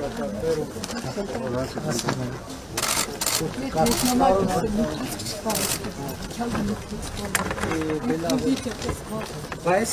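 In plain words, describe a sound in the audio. An elderly woman speaks loudly and with animation nearby.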